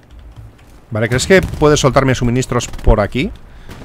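A rifle fires in bursts.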